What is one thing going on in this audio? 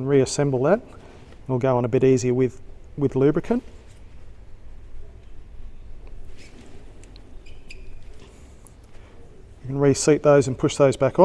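A man talks calmly close by, explaining in short bursts.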